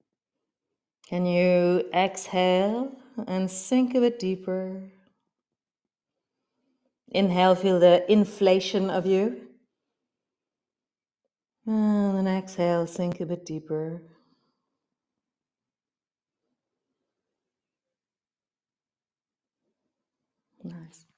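A woman speaks calmly and softly, close to a microphone, with long pauses.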